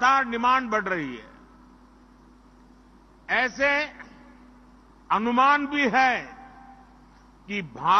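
An elderly man speaks slowly and forcefully into a microphone, with pauses, his voice carrying through loudspeakers.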